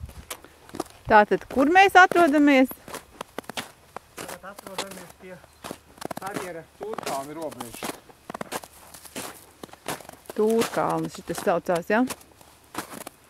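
A man speaks close by, outdoors.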